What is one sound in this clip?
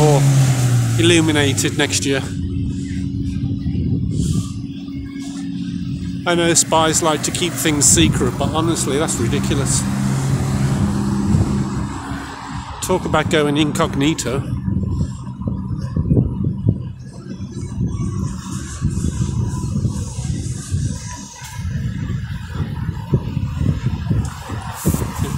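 A vehicle's engine rumbles steadily while riding along a street.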